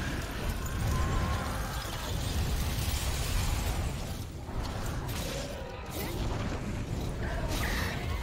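A monster's icy breath roars and hisses in a rushing blast.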